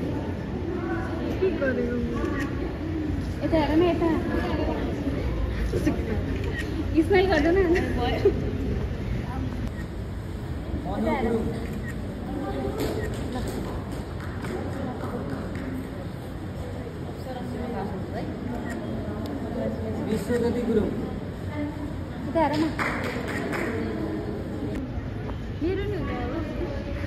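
Women chatter and laugh nearby.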